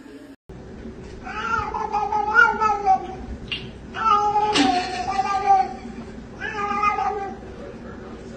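A cat meows loudly, over and over.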